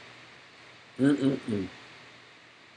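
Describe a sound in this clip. A man speaks briefly and calmly close to the microphone.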